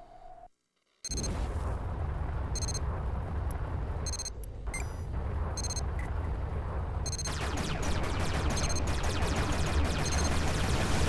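A spaceship engine roars steadily.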